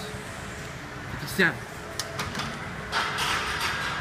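A metal weight bar clanks into a rack.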